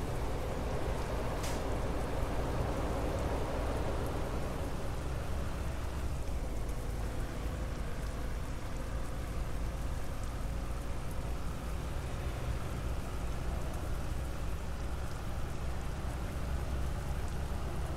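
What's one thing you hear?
A bus engine drones steadily as the bus drives along a highway.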